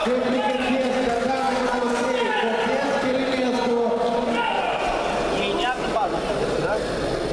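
A crowd of spectators talks and shouts in a large echoing hall.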